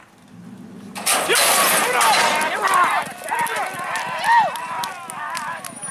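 Horses gallop on dirt with drumming hooves.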